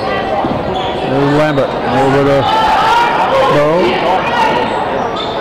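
Sneakers squeak on a wooden floor.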